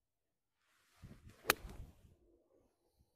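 A golf club swishes through the air and strikes a ball with a sharp click.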